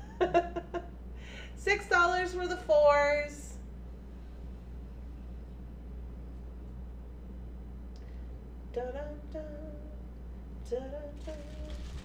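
A woman talks with animation into a microphone, with pauses.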